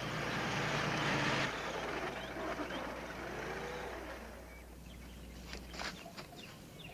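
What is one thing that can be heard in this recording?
An old car engine runs and rumbles.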